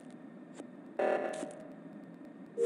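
A bright chime rings out briefly.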